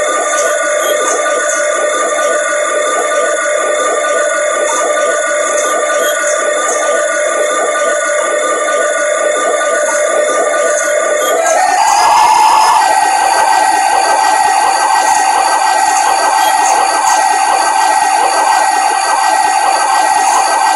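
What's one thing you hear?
A diesel locomotive engine drones steadily and then rises in pitch.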